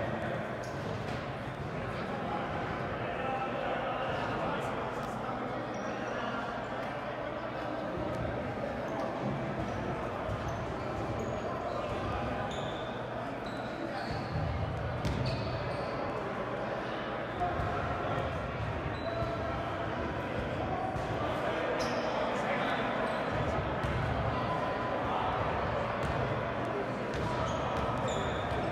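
A crowd of spectators chatters throughout in a large echoing gym.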